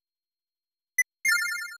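A quick electronic chime sounds as a game menu opens.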